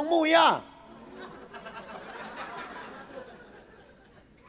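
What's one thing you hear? An audience laughs softly.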